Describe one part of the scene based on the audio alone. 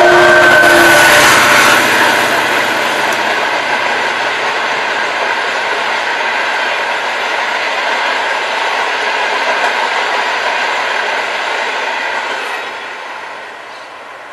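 Train wheels clatter and rumble steadily along the rails, then fade away.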